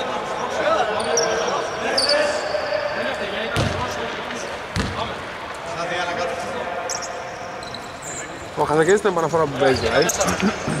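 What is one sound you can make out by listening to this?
Sneakers squeak on a wooden court.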